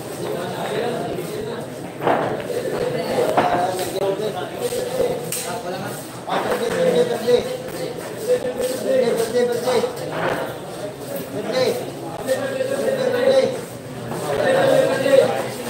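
A crowd of young men chatters in the background.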